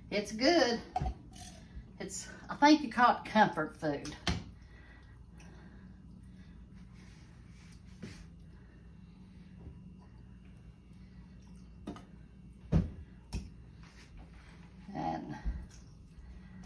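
A spoon clinks against a metal pot.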